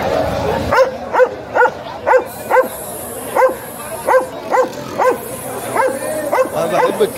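A dog barks loudly and repeatedly, close by.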